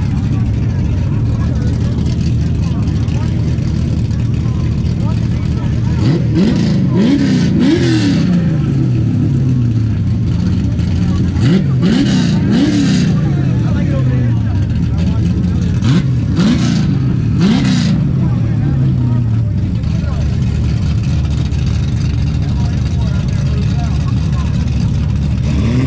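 A car engine idles with a deep, loud rumble close by.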